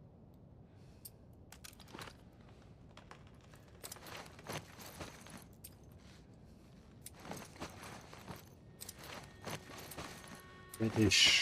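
Footsteps crunch over debris on a hard floor.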